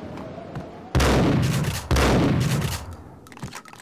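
A shotgun fires twice with loud booming blasts that echo.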